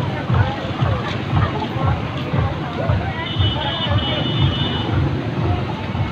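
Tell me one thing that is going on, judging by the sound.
Motorcycle engines hum as motorcycles ride past.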